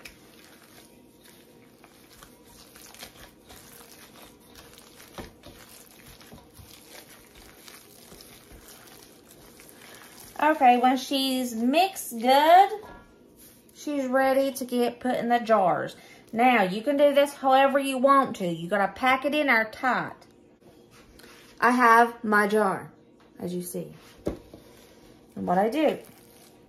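Gloved hands squish and knead soft ground meat.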